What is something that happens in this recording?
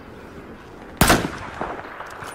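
A rifle fires a sharp, loud shot.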